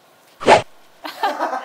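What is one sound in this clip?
A young woman shouts excitedly.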